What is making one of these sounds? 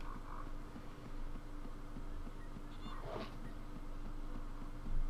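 Footsteps thud steadily on a wooden ladder.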